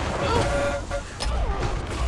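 A weapon fires a crackling electric beam.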